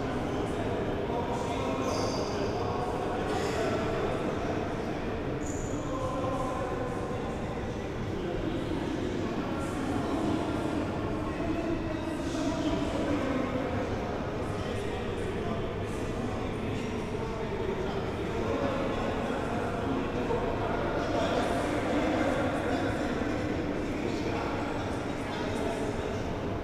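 Children chatter and call out in a large echoing hall.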